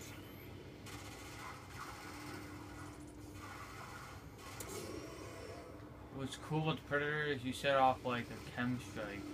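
Video game gunfire and effects play from a television speaker.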